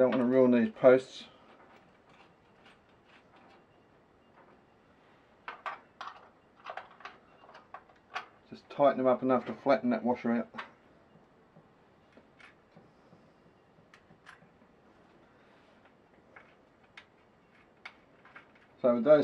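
A metal tool clicks and scrapes against a metal terminal.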